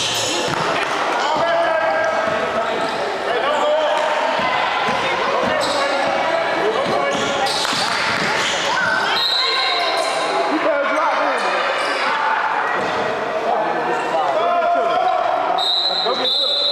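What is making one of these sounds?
Young players shout and call out across an echoing gym.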